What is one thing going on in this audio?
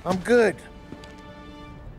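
A man speaks briefly in a calm voice.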